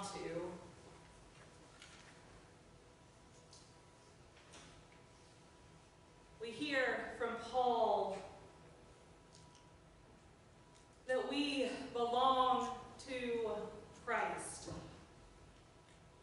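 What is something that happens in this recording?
A woman speaks calmly into a microphone, with pauses, in a large echoing room.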